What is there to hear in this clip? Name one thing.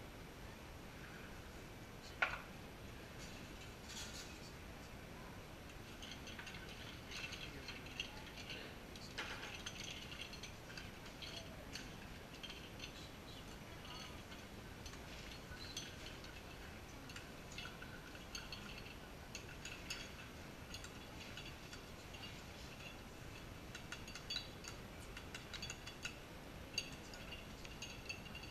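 Ice and glass clink as a bartender mixes a drink.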